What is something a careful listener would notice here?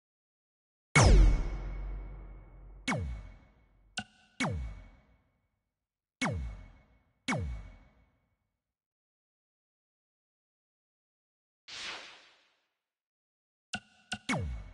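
Menu interface sounds chime and whoosh as selections are made.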